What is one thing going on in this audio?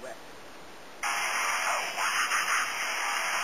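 Wind rushes across the microphone outdoors.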